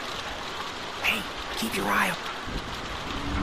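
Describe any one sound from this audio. A woman shouts urgently.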